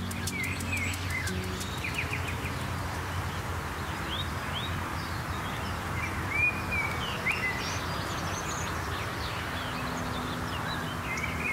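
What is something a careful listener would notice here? A woodpecker calls with short sharp notes outdoors.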